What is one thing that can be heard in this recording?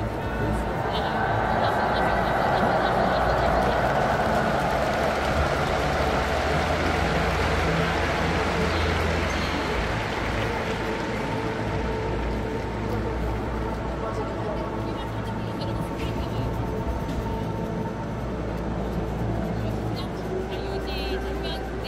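A huge crowd murmurs and cheers in a large echoing stadium.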